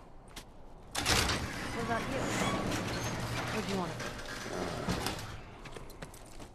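A metal roller shutter rattles as it is raised.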